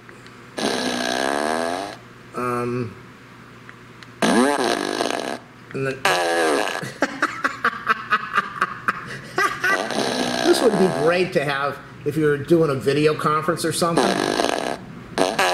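A small novelty speaker plays loud, rasping fart noises in bursts.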